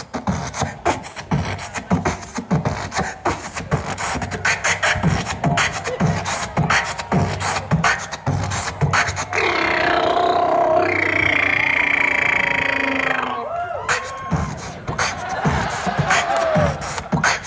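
A young man beatboxes a steady rhythm into a microphone, heard through loudspeakers.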